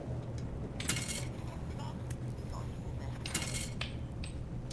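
A coin machine's slot clatters with metallic rattles.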